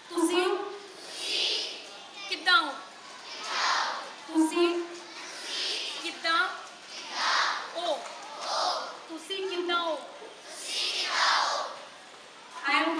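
A large crowd of children calls back in unison.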